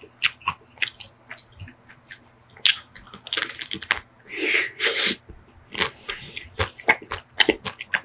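A person chews and smacks wetly close to a microphone.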